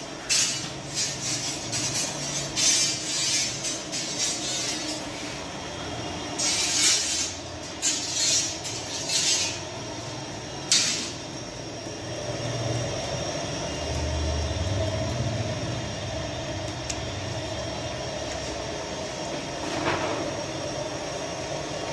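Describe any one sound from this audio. Flames roar steadily inside a bread oven.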